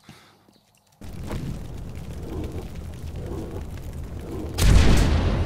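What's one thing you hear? A fireball roars and crackles.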